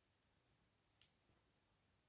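A card is set down softly on a table.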